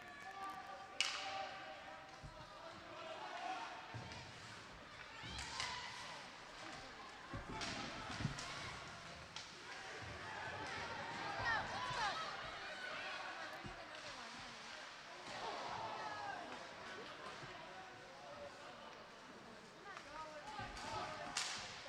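Hockey sticks clack against the puck.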